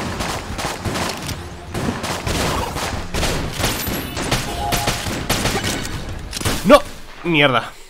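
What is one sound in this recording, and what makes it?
Rapid gunfire and explosions crackle from a video game.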